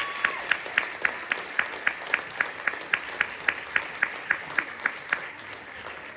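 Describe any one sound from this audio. A large group claps in a steady, quick rhythm in an echoing hall.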